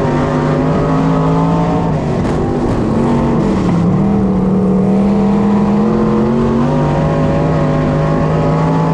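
A race car engine roars loudly up close, its pitch rising and falling as it speeds around the track.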